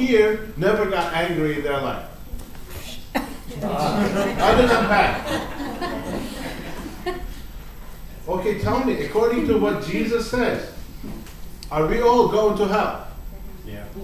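A middle-aged man speaks with animation into a microphone, heard through a loudspeaker in a room.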